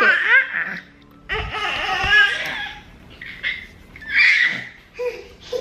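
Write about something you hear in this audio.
A baby squeals and babbles.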